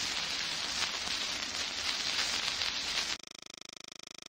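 A spinning gramophone record crackles and hisses.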